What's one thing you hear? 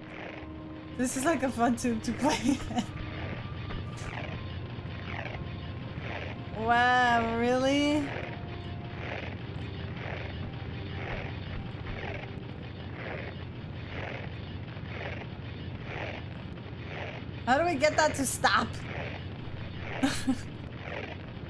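A young woman talks and laughs with animation through a microphone.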